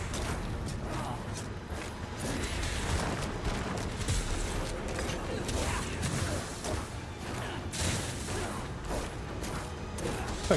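Fighting sounds of blows and spells burst and crackle.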